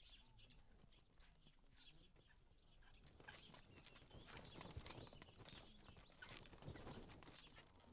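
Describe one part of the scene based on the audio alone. Footsteps shuffle on a stone path.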